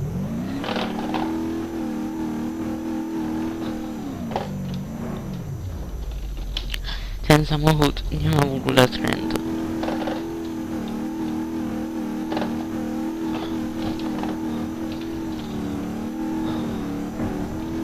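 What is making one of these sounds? A car engine hums steadily, dropping low and revving up again.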